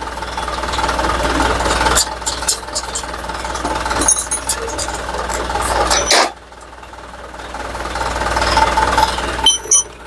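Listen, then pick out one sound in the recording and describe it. Metal parts clink and clatter as they are handled.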